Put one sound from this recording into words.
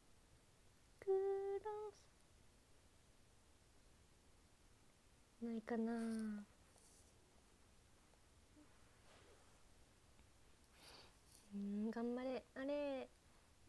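A young girl hums short, sliding notes up close, with pauses in between.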